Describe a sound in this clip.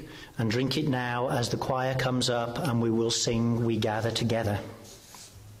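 A man speaks through a microphone in a hall.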